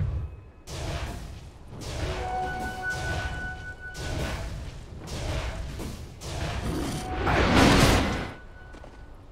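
Magic blasts and weapon clashes crash loudly during a fight.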